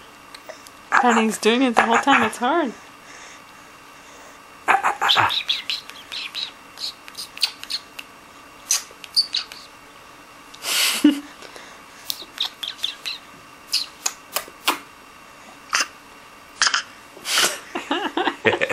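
A woman talks softly and playfully to a baby up close.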